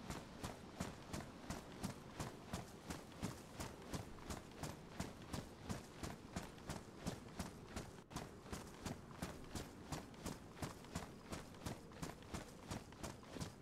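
Boots crunch steadily on a gravel track.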